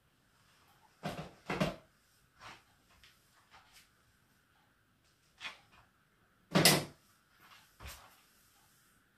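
Hair swishes and rustles as a woman tosses it.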